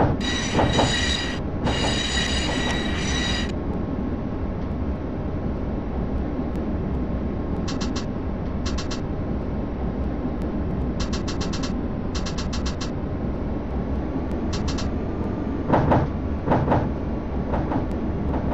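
A tram rumbles steadily along the rails.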